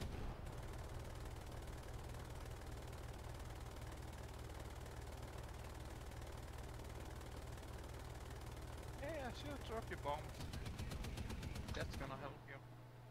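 A tank engine rumbles steadily.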